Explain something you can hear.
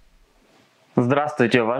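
A young man speaks calmly and with animation into a close microphone.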